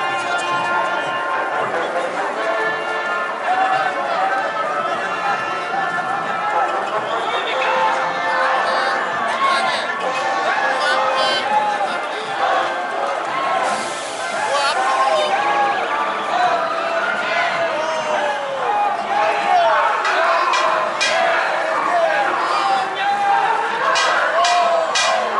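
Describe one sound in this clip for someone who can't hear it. A crowd of marchers talks and calls out outdoors.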